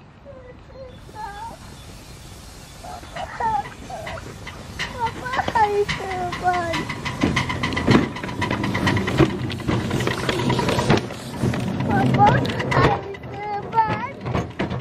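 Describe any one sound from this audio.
A live-steam miniature locomotive hisses as it vents steam.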